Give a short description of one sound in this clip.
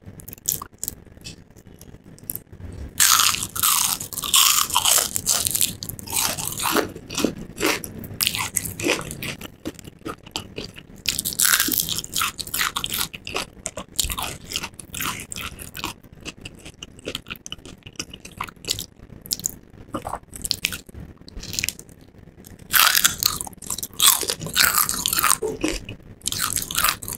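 A woman chews noisily and wetly up close.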